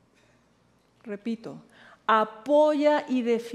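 A woman speaks clearly into a microphone.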